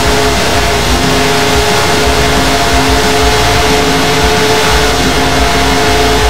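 Racing engines roar loudly at high, steady speed.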